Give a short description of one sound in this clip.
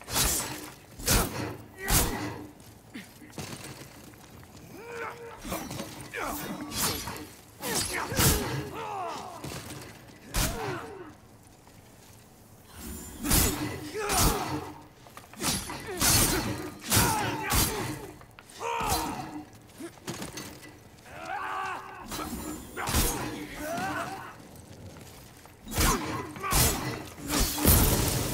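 Swords clang and strike in a fight, in sharp bursts.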